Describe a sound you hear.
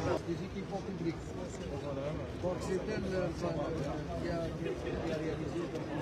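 A woman greets a man nearby.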